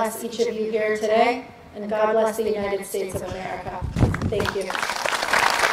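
A young woman speaks calmly into a microphone over a loudspeaker.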